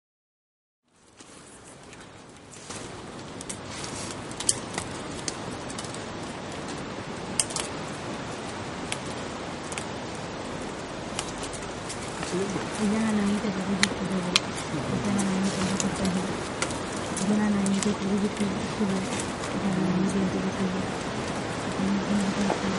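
A crowd of young people murmurs and shuffles outdoors.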